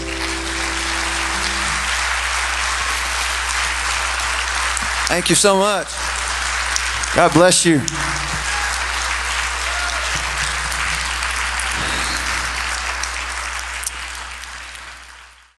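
An audience applauds and cheers loudly in a large hall.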